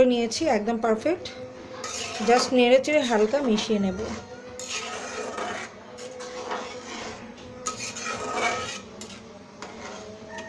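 A spoon stirs thick liquid in a metal pan, scraping and clinking against the sides.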